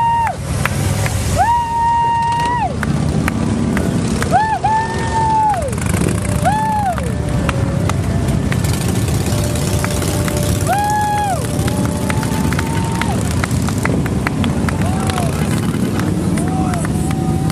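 Motorcycle engines rumble loudly as they ride past one after another.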